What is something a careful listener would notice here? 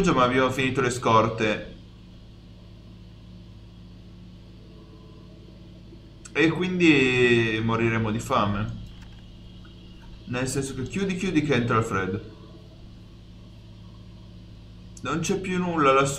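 A young man talks with animation into a headset microphone, close up.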